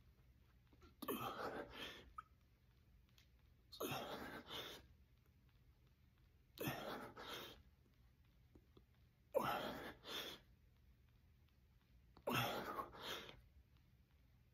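A middle-aged man breathes out sharply with each push-up.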